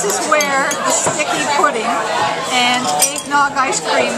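Metal cutlery clinks against a plate.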